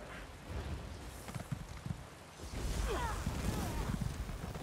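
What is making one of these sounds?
A magic spell crackles and zaps.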